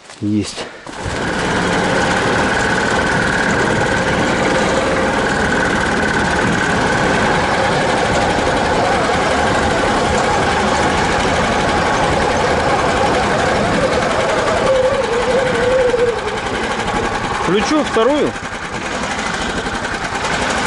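An engine drones steadily as a small vehicle drives over rough ground.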